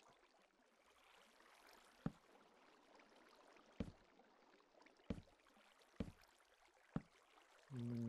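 A hammer taps on wood now and then.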